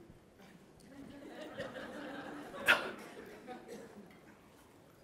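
An audience laughs softly.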